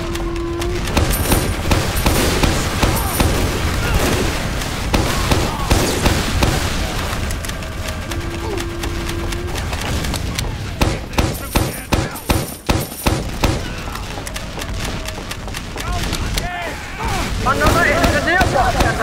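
A rapid-fire gun rattles in loud bursts.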